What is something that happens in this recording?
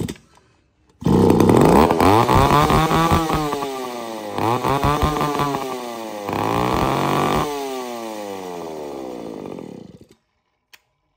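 A chainsaw engine runs loudly, revving up and down.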